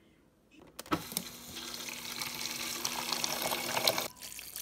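A dispenser hums steadily.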